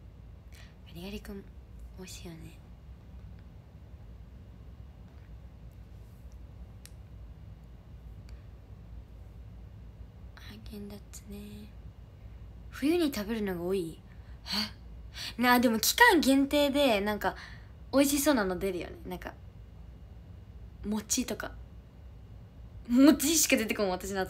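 A young woman speaks softly and close by, with pauses.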